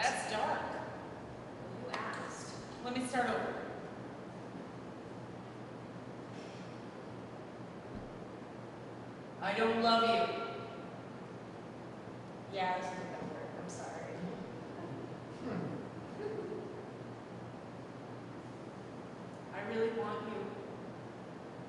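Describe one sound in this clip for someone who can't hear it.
A young woman speaks quietly, close by, with long pauses.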